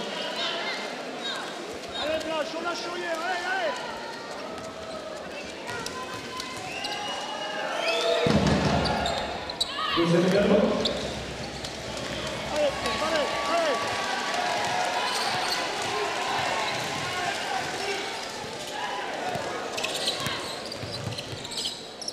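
A large crowd murmurs in an echoing indoor arena.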